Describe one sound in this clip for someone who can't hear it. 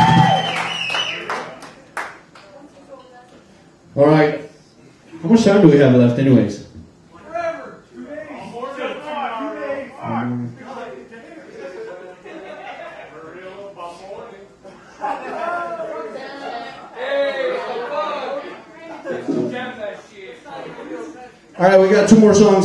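A man talks into a microphone, heard through loudspeakers in an echoing room.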